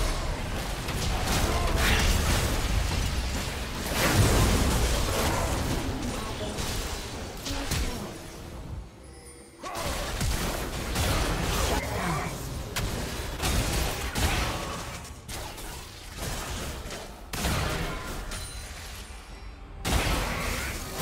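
Magic blasts and impacts burst in a chaotic game battle.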